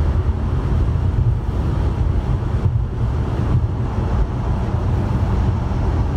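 A large truck rumbles past close by.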